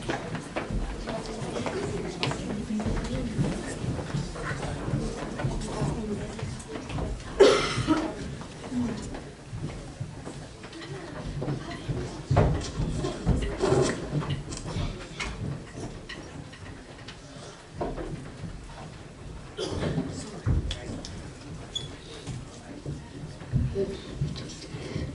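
Young people on a stage talk and call out over one another in a large echoing hall.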